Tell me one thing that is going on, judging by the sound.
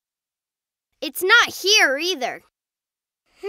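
A young boy speaks in a worried, animated cartoon voice.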